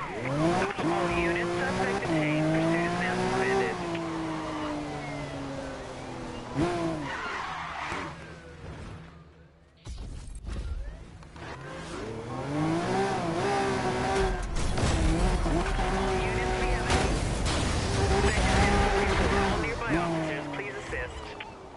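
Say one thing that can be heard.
A sports car engine roars and revs up and down at high speed.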